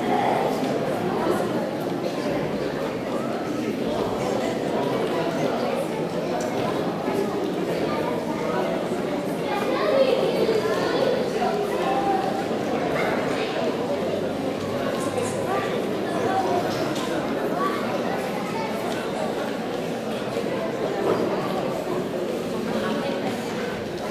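A crowd of children chatters in a large echoing hall.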